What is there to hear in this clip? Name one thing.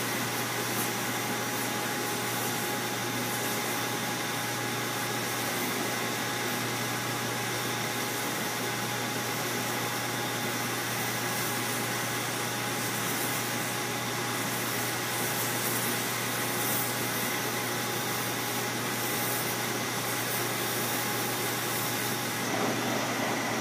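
A stone rasps and hisses against a spinning polishing wheel.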